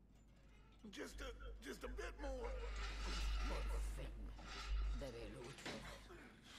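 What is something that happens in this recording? A metal gate creaks and rattles as it rises.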